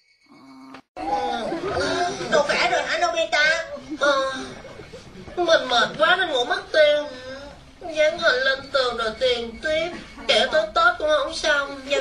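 A boy speaks with animation, close by.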